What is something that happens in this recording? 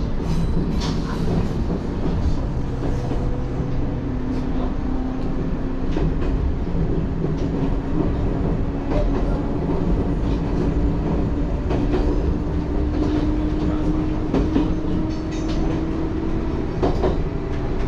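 A train's motor hums with a slowly rising whine.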